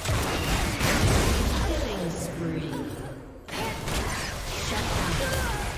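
Magic blasts and weapon strikes clash rapidly in a video game battle.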